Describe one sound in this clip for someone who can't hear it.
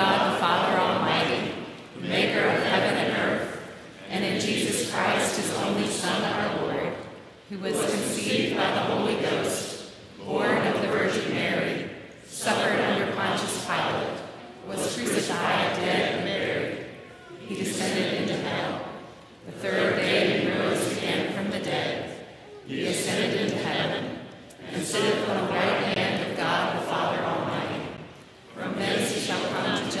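A congregation recites together in unison in a large echoing hall, in phrases with short pauses.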